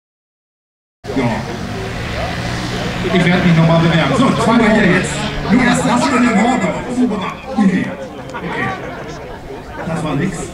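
A small model plane engine buzzes and revs nearby.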